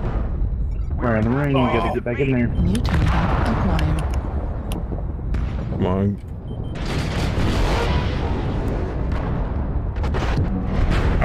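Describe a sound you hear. Weapons fire in bursts.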